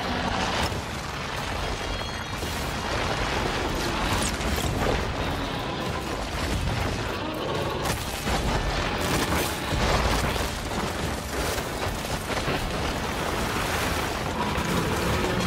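Explosions boom and debris crashes repeatedly.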